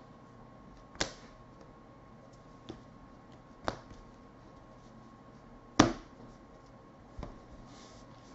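Stiff trading cards tap and flick sharply now and then.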